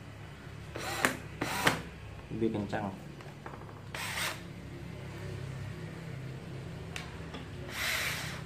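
A battery pack clicks out of and into a cordless drill.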